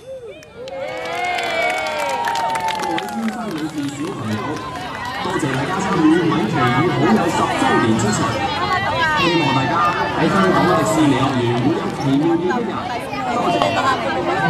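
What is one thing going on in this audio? Upbeat music plays loudly over loudspeakers outdoors.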